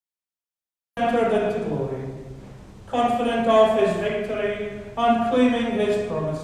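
An organ plays a slow, loud piece that echoes through a large hall.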